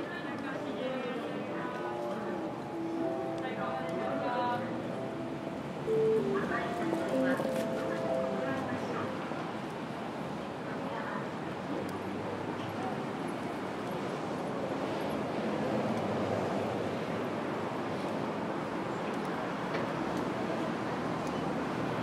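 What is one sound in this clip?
A crowd of pedestrians murmurs and chatters nearby outdoors.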